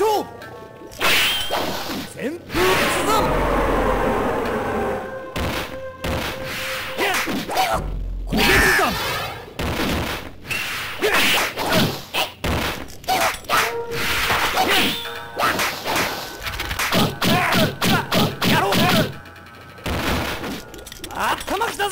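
Swords swing and clash in quick, sharp strikes.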